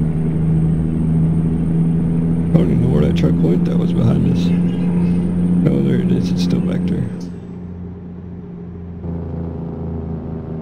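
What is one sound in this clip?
A truck engine drones steadily at cruising speed.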